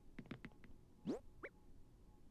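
A short rising whoosh plays as a menu opens.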